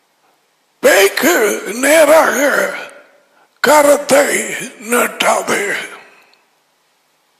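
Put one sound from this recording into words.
An elderly man speaks with animation into a headset microphone.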